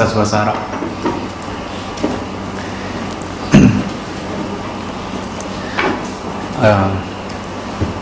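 A man speaks calmly into a microphone in an echoing room, with long pauses.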